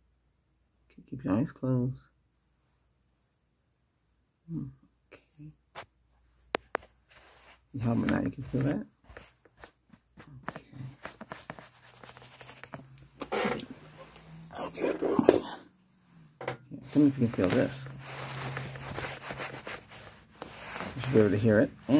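A man speaks softly and close to the microphone.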